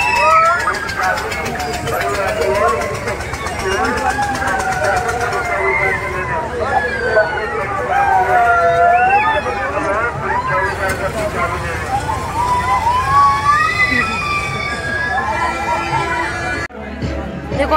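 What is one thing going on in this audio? A fairground ride whirs and rumbles as it spins round.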